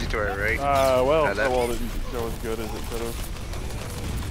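A video game weapon fires a buzzing energy beam.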